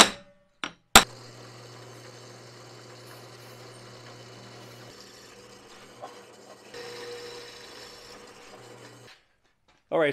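A drill press whirs steadily as it drills into metal.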